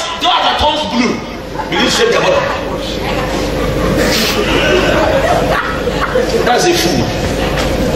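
A man preaches loudly and with animation into a microphone, heard through loudspeakers in an echoing hall.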